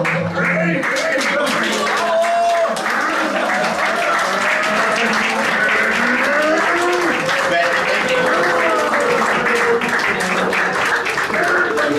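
A group of men and women sing loudly together.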